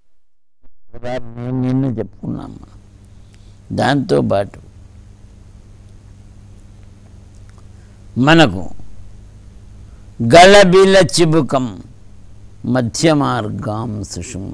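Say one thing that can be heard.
An elderly man chants slowly in a steady voice into a microphone.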